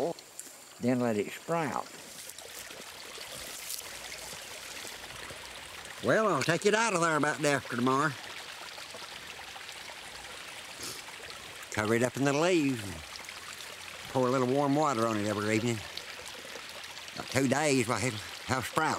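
An elderly man talks calmly close by, in short bursts with pauses.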